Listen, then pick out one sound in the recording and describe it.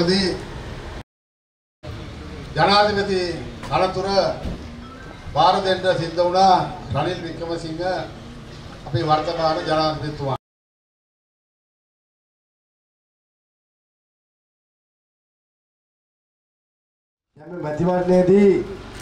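A man speaks with animation, amplified by a microphone.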